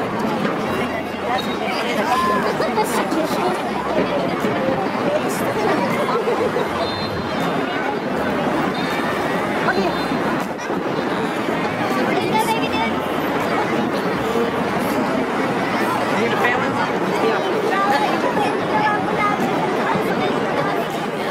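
A busy crowd of men and women chatters all around outdoors.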